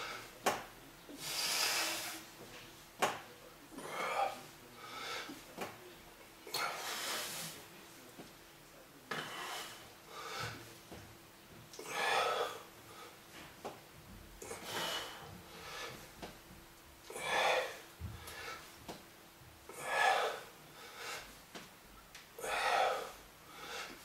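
An older man breathes out hard with each lift.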